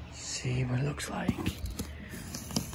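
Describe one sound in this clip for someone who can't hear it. Scissors snip and cut through cardboard.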